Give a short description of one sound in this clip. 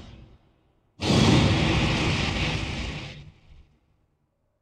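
A heavy rushing roar surges and fades.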